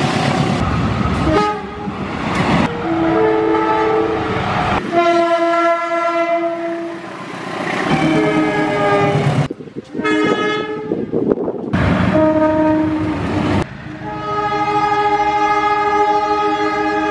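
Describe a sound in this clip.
A locomotive horn blares loudly, again and again.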